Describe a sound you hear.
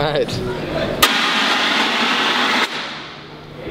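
A smoke cannon blasts out a loud, sudden hissing jet.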